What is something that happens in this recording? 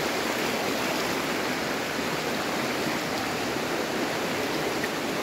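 A shallow stream rushes and burbles over rocks.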